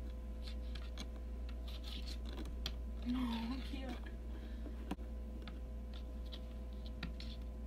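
A cat's claws tap and scratch against glass.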